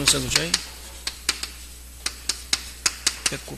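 Chalk taps and scrapes sharply on a blackboard.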